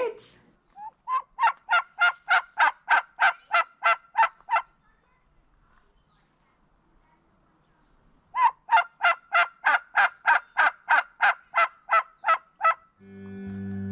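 A turkey gobbles in rapid bursts.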